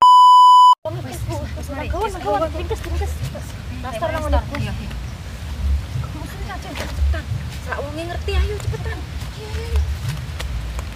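Young women talk and laugh excitedly nearby.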